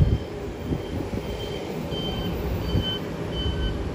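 A truck rumbles past.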